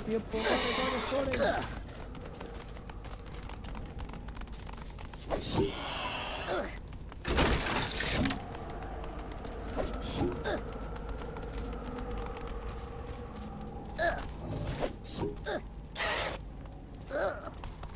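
Light footsteps patter on stone.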